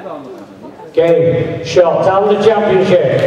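An elderly man speaks loudly into a microphone, heard through loudspeakers in a large echoing hall.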